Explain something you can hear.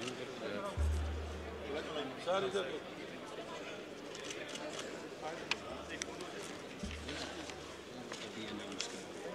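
Men talk quietly nearby in a large echoing hall.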